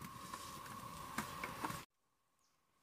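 Hard fruits knock together in a wicker basket.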